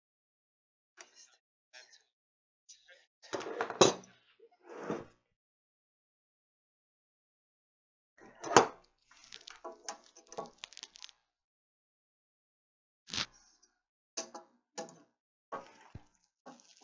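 Tools tap and knock on wooden boards.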